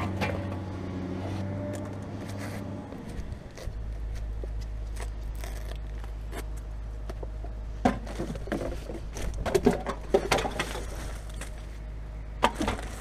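Plastic bottles and wrappers crinkle and rustle in a bin of rubbish.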